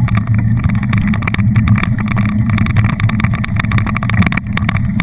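Bicycle tyres roll over a bumpy dirt trail.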